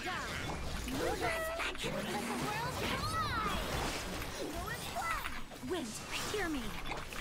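Magic blasts and impacts crash and whoosh in a game battle.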